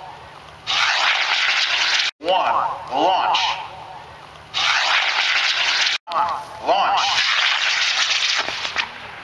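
A model rocket motor roars as the rocket lifts off.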